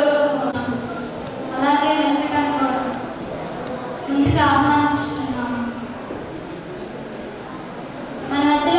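A young woman speaks calmly into a microphone, heard through loudspeakers in a reverberant hall.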